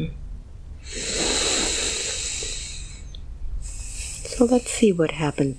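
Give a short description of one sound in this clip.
A young man sniffles and breathes in sharply.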